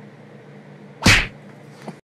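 A dog barks loudly once, close by.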